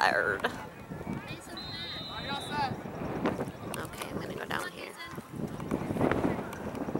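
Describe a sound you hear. A crowd of people chatters and calls out in the distance outdoors.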